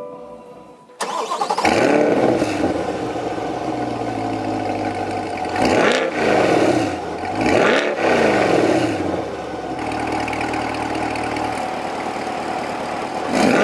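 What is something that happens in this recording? A sports car engine starts and idles with a deep, steady rumble.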